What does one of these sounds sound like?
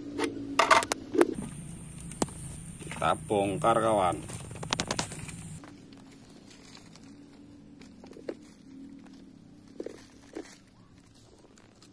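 Hands crumble and rub loose soil.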